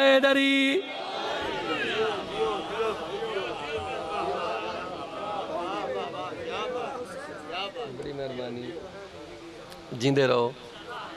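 A man chants loudly through a microphone and loudspeakers.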